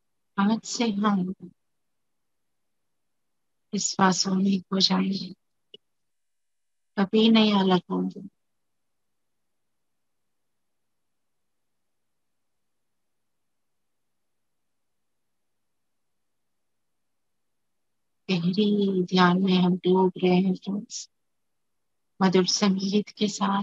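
A woman chants slowly and melodiously through an online call, with long pauses.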